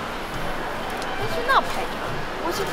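A young woman laughs and talks nearby.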